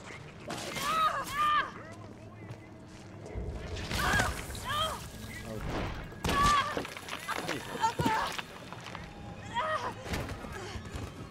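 A young woman grunts and cries out with effort.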